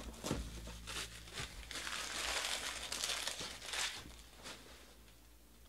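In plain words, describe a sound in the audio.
Plastic wrapping crinkles and rustles up close.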